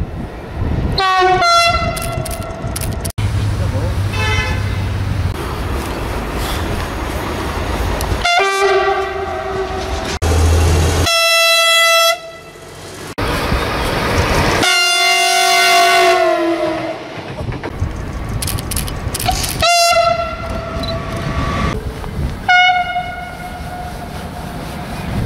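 A train horn blares loudly, several times.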